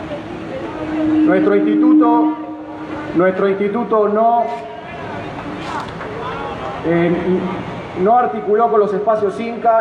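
A man speaks with animation into a microphone, heard through loudspeakers outdoors.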